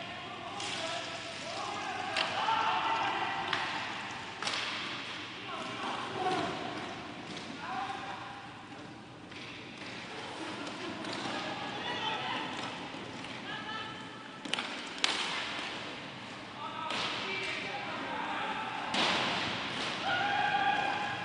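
Plastic skate wheels roll and scrape across a hard floor.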